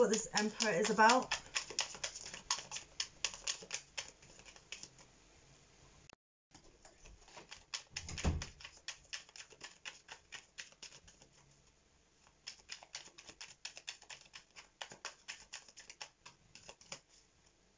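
Cards tap and shuffle in a woman's hands.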